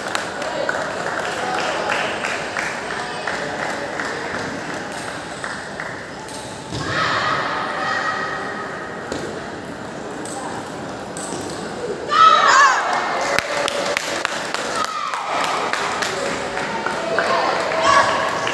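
Ping-pong balls click on paddles and tables in a large echoing hall.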